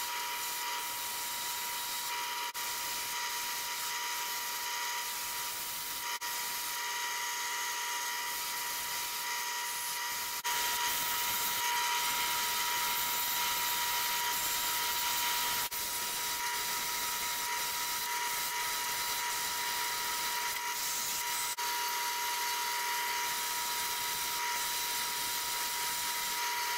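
A drill press motor whirs steadily with a high whine.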